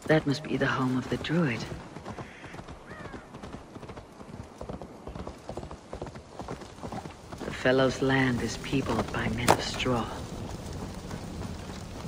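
A horse's hooves clop slowly on earth and wooden planks.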